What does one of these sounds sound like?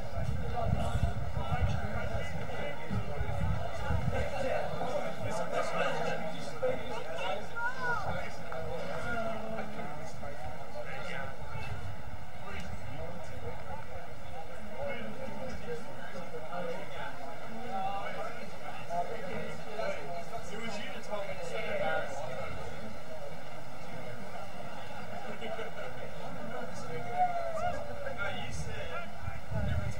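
Outdoors, wind rumbles across the microphone.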